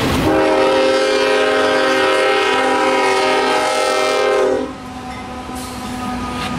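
Freight cars clatter along the rails.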